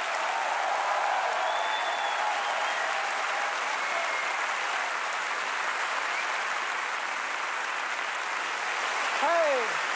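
A large crowd applauds steadily in a large echoing hall.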